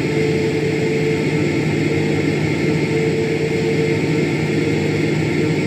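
Jet engines hum with a steady, even drone.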